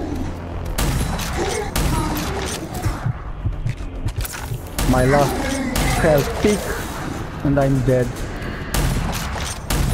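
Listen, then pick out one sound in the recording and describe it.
A rifle fires in sharp bursts of shots.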